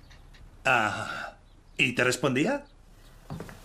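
A man speaks cheerfully close by.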